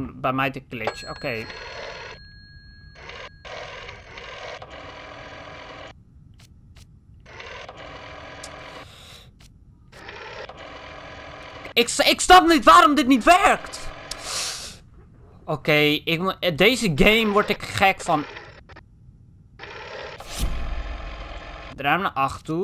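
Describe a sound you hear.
A rotary telephone dial whirs as it turns and springs back.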